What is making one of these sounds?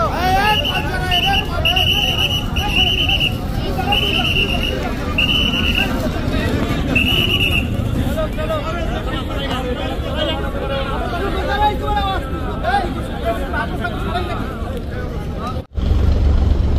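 A crowd of men and women chatters and calls out nearby.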